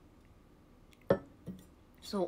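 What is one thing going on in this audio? A mug knocks down on a hard surface.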